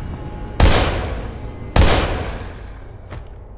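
Two pistol shots ring out loudly and echo down a corridor.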